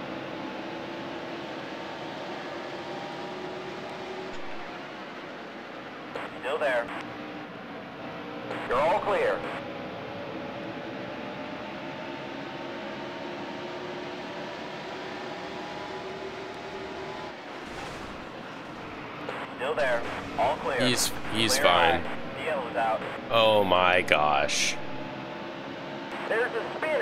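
Race car engines drone steadily at high speed.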